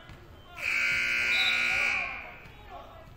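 A referee's whistle blows loudly and sharply.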